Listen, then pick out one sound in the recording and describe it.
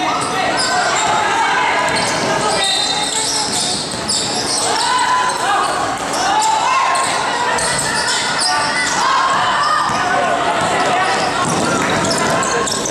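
Children chatter and call out in the background.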